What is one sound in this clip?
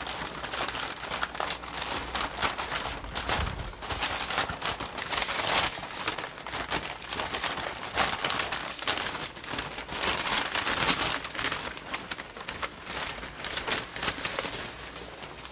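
Stiff paper wrapping rustles and crinkles up close as it is handled.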